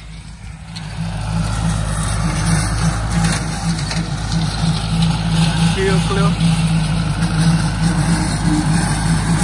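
A rotary mower roars as it cuts through tall grass.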